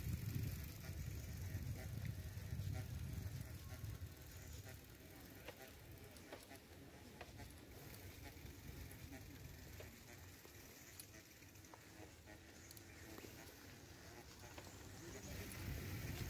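Bicycle tyres roll over a paved path.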